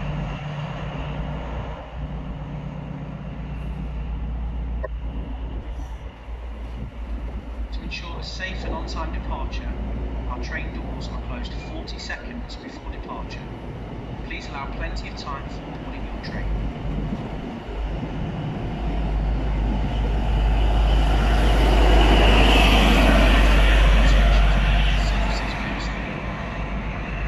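A passenger train rolls past close by with a steady rumble.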